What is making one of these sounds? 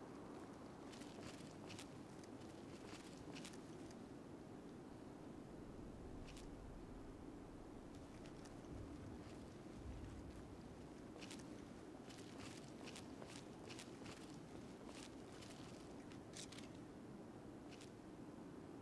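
Footsteps crunch over snowy ground.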